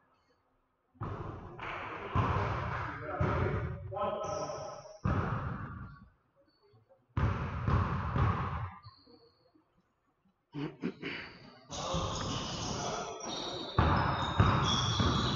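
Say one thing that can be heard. A basketball bounces on a hard floor, echoing.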